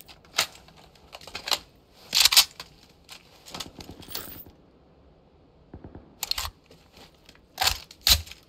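Footsteps scuff and thud on a hard floor.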